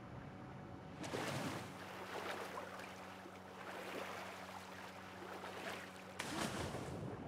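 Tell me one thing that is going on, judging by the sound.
Water splashes close by.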